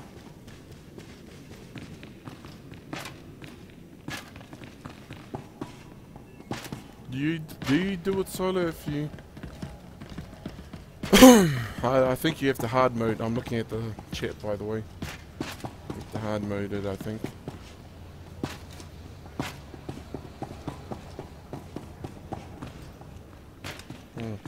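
Footsteps patter softly on a hard metal floor.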